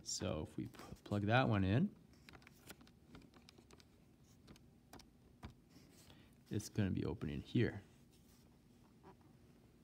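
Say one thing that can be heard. Buttons click softly as keys are pressed on a calculator.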